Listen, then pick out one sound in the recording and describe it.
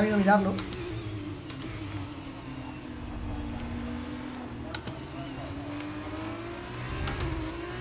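A racing car engine whines and shifts through the gears.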